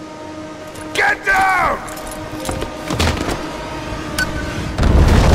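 A young woman shouts urgently.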